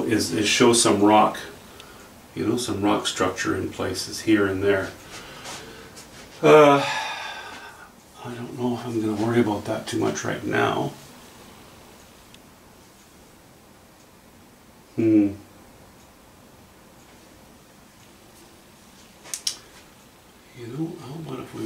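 An older man talks calmly and closely, explaining.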